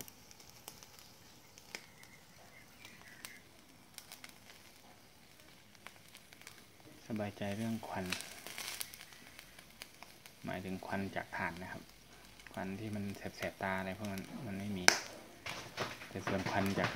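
Meat sizzles softly on a charcoal grill.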